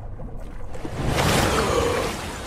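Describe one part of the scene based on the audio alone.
Water splashes loudly as a penguin bursts out of the surface.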